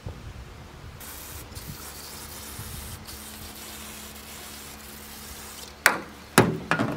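An aerosol can sprays with a steady hiss.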